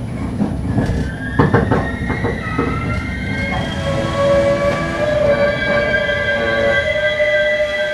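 Train brakes squeal as the train slows down.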